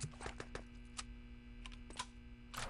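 A rifle clicks as it is reloaded.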